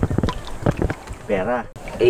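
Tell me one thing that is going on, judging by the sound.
Water splashes as a hand rinses in it.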